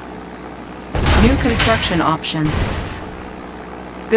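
A heavy structure thuds into place with a clanking rumble.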